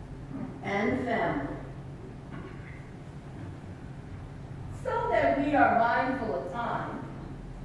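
An elderly woman speaks calmly through a microphone in an echoing hall.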